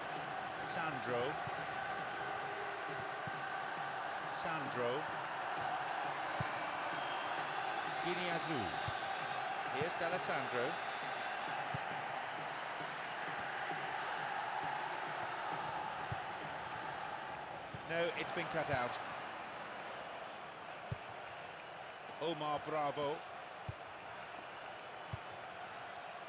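A football is kicked with dull thuds now and then.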